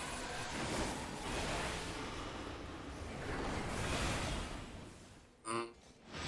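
Game battle effects whoosh and rumble.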